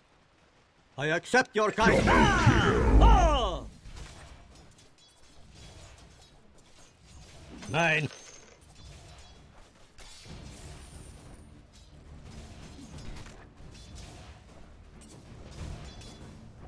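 Game spell effects whoosh and crackle during a battle.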